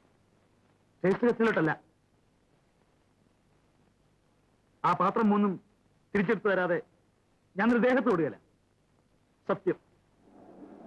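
A man speaks tensely in short bursts, close by.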